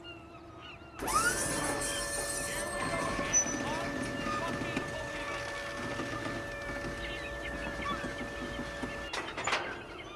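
A lift motor whines steadily as a platform rises.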